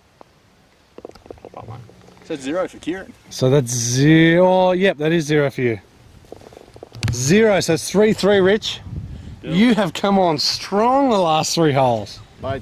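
A man talks calmly and clearly up close.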